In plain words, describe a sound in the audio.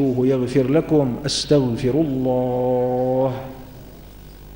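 A man speaks through a microphone, chanting in a drawn-out voice that echoes in a large hall.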